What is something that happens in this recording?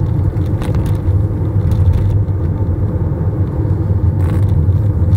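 Tyres roll steadily over a rough road.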